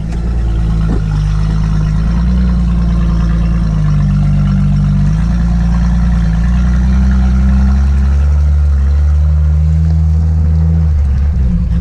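Muddy water splashes and sloshes against a vehicle.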